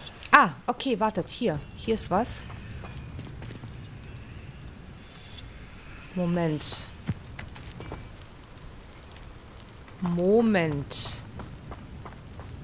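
Footsteps run quickly over dirt.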